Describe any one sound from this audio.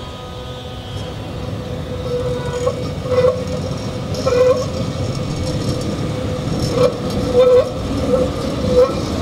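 A tram rumbles past close by.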